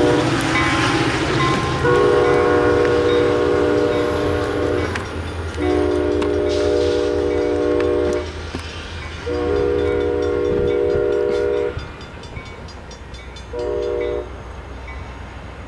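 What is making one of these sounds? A diesel locomotive engine rumbles steadily as the train approaches.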